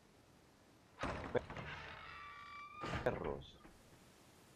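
A heavy iron gate creaks open with a long metal squeal.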